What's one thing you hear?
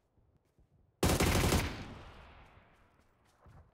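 A rifle shot cracks and echoes.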